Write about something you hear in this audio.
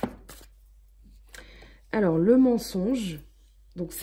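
A card slaps softly onto a table.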